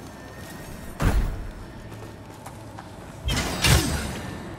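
A heavy weapon strikes with a loud, booming crash.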